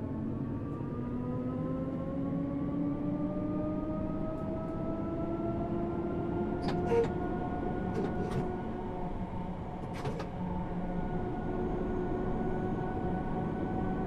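An electric train motor whines, rising in pitch as the train speeds up.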